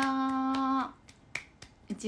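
A young woman claps her hands.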